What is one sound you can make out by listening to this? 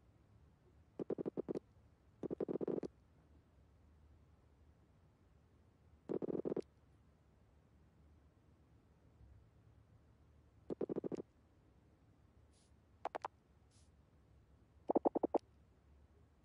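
Short bursts of rapid electronic blips chatter.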